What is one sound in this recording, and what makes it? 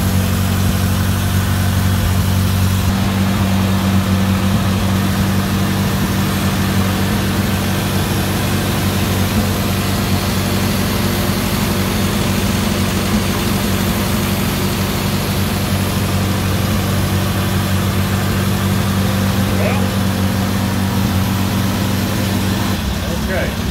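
A tractor engine idles with a steady low rumble.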